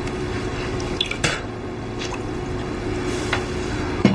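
Porcelain clinks on a wooden table.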